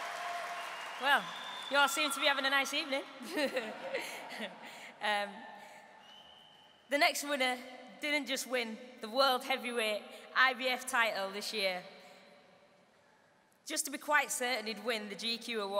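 A young woman speaks calmly into a microphone, heard through a loudspeaker.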